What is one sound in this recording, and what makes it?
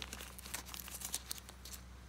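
Fingers brush and tap against plastic card sleeves.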